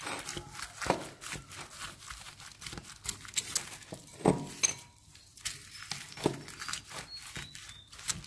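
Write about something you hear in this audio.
Small foam beads crunch and rustle as fingers squeeze and stir them.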